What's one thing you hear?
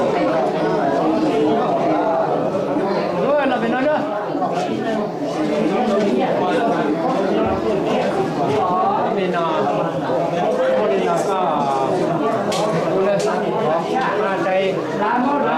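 A crowd of men and women chatter loudly close by.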